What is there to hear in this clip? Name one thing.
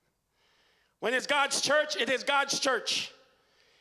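A man speaks loudly and with animation through a microphone in a reverberant hall.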